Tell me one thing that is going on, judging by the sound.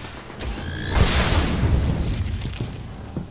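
A crackling energy blast bursts loudly.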